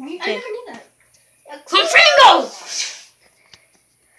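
A boy speaks loudly and excitedly close by.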